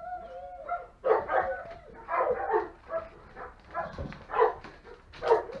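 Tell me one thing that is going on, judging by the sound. Puppies yelp and bark sharply.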